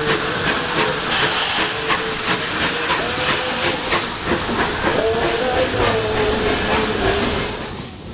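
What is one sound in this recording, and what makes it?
Train carriages roll past, wheels clacking rhythmically over rail joints.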